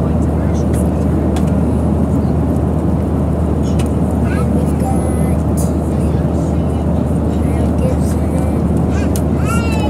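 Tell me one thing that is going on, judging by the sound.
A loud steady airplane engine roar fills the cabin.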